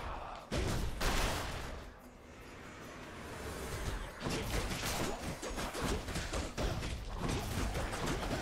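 Fiery explosions burst with loud booms.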